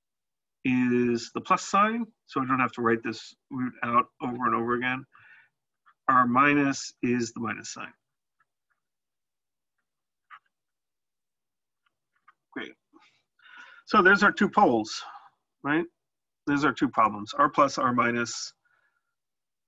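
A man explains calmly, close to a microphone.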